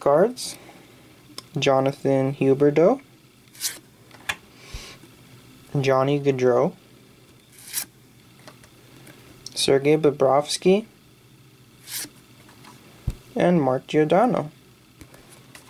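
Trading cards slide and rustle softly as hands flip through them.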